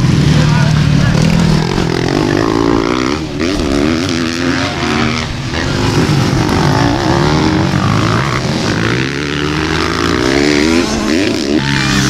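Dirt bike engines rev and whine, rising and falling in pitch as the bikes race over the track.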